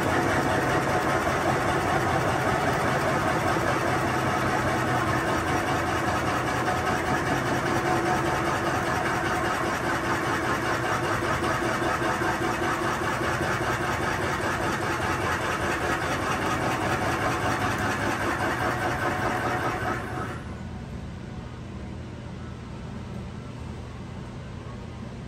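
A wood lathe spins with a steady low hum.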